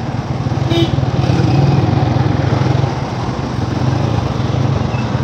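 Traffic rumbles along a busy street.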